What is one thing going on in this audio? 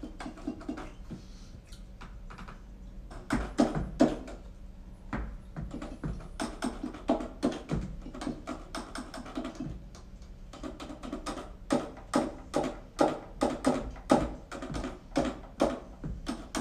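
Fingers press the keys and pads of a small music keyboard.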